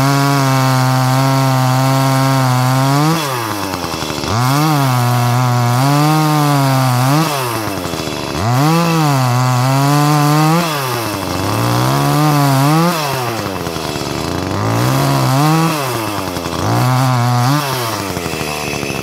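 A chainsaw engine revs up and down loudly while cutting into a tree trunk.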